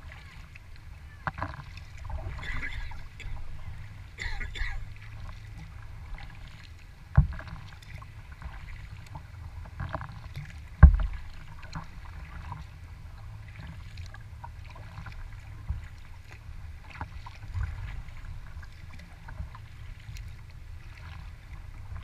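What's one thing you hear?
Water laps and splashes against a kayak's hull.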